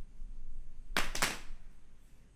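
Hands clap sharply once.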